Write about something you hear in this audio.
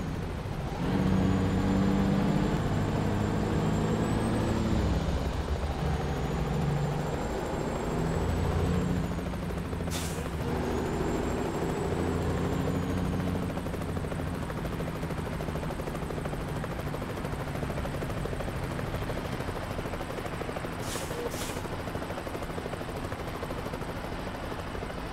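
A heavy truck engine rumbles and revs, its pitch rising and falling as gears change.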